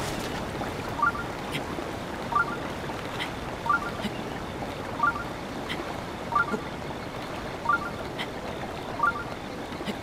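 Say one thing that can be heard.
A game character climbs a rock face with repeated short grunts of effort.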